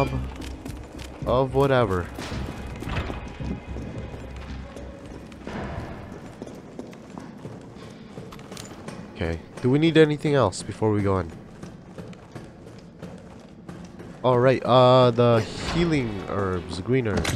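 Footsteps tread on hard floors and metal stairs.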